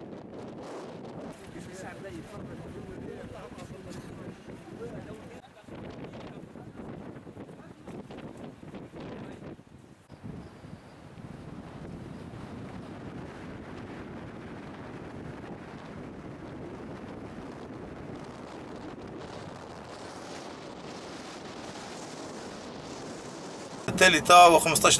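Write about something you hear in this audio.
Wind blows over open water outdoors.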